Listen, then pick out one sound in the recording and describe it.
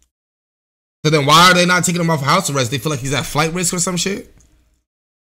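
A young man speaks with animation into a microphone.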